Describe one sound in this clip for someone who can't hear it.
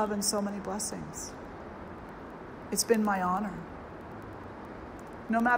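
An elderly woman speaks calmly and slowly into a microphone.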